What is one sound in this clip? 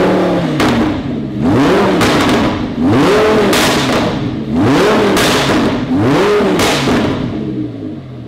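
An exhaust crackles and pops as the engine drops back.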